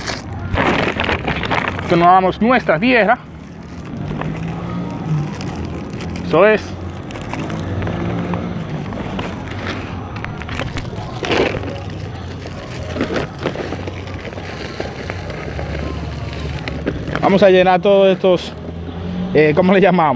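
A plastic sack rustles and crinkles as hands work at its opening.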